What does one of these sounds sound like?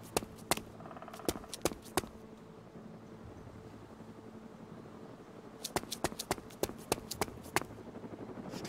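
Heavy boots thud on a hard floor.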